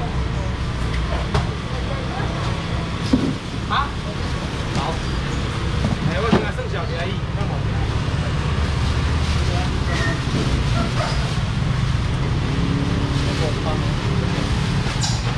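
A busy market crowd murmurs and chatters all around.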